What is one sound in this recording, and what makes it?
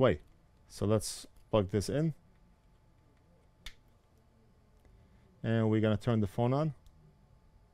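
A man speaks calmly and closely into a headset microphone, in short phrases.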